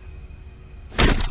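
A locked door handle rattles sharply.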